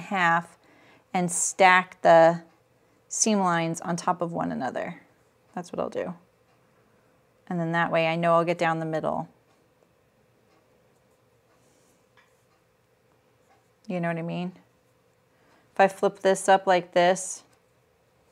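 An older woman talks calmly and clearly into a microphone, pausing between phrases.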